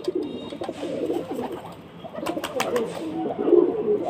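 Pigeon wings flap and clatter as a bird takes off.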